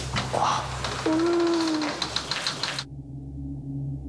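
A wooden door creaks open slowly.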